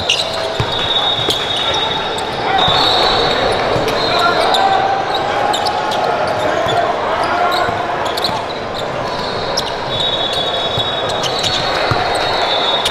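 A basketball bounces with dull thumps on the court.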